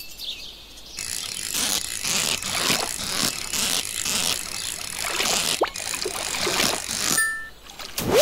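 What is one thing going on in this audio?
A fishing reel clicks and whirs rapidly.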